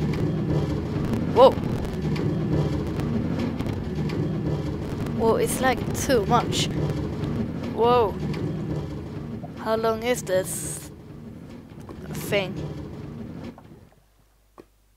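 A minecart rumbles along metal rails.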